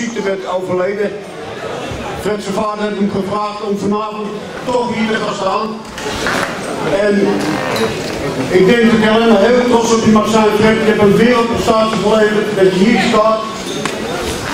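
A middle-aged man announces loudly through a microphone and loudspeakers in a large echoing hall.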